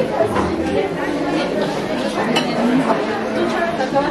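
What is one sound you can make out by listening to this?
Several women chat nearby in lively voices.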